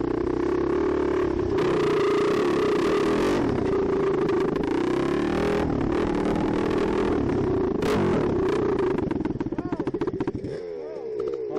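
A dirt bike engine roars loudly up close as it rides along.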